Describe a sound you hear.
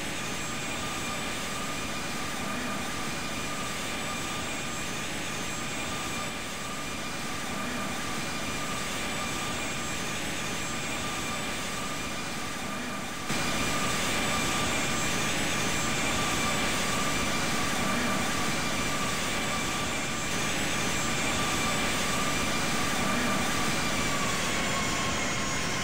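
Jet engines roar and whine steadily as an airliner flies.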